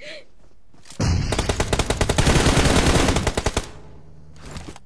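Rapid gunfire rattles in a burst.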